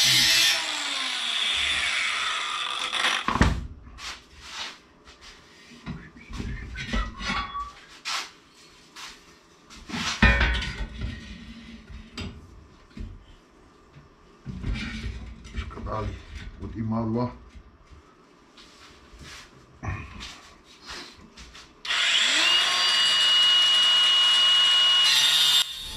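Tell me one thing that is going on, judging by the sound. An angle grinder whines loudly, grinding metal.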